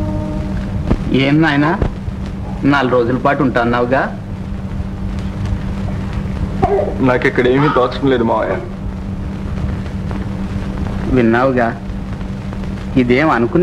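A young man speaks calmly in short phrases.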